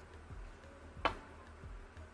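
A cue taps a snooker ball with a sharp click.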